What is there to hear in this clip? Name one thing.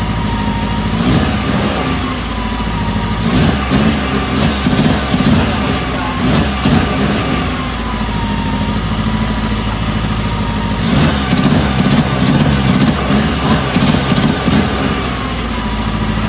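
A car engine revs in short bursts.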